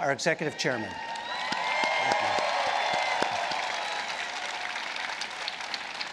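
A large crowd cheers and applauds outdoors.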